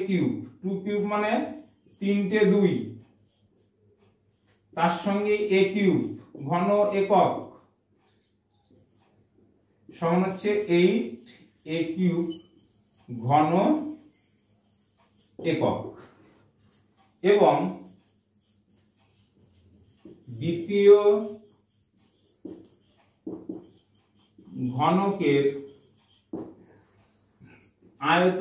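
A middle-aged man speaks calmly and explains, close by, with pauses.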